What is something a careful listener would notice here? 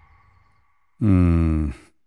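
A middle-aged man groans loudly nearby.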